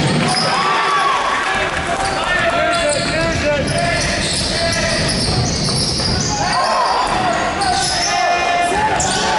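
Sneakers squeak sharply on the floor.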